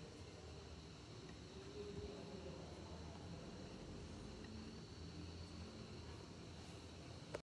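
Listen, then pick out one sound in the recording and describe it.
A ceiling fan whirs steadily overhead.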